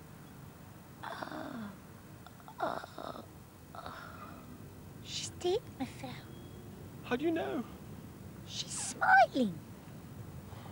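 A woman speaks softly and anxiously up close.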